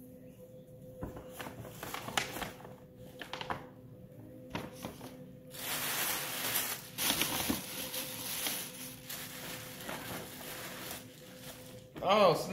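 Paper gift bags and tissue paper rustle and crinkle.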